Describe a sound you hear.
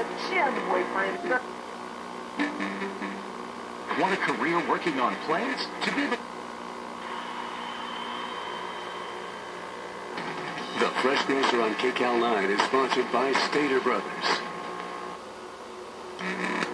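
Sound plays from a small, tinny old television speaker, cutting in and out as the channels change.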